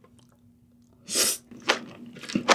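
A young woman slurps noodles loudly close to a microphone.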